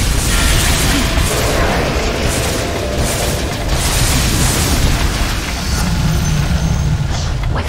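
Game spell effects and weapon blows clash in a busy battle.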